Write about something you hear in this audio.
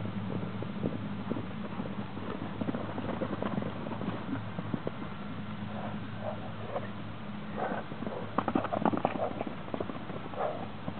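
Horses' hooves thud on the ground as they gallop.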